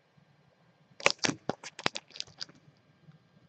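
A hard plastic case clicks and taps.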